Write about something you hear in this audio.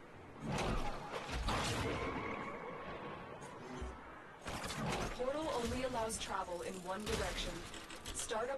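An energy blade whooshes sharply through the air.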